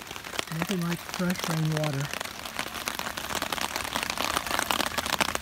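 Rain patters steadily on a tarp overhead.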